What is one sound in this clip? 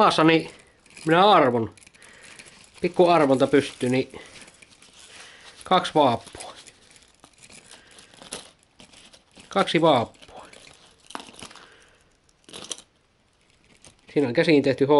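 A man talks calmly up close, in short bursts with pauses.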